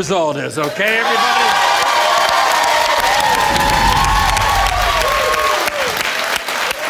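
A crowd claps hands.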